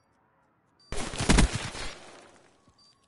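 A loud gunshot blasts close by.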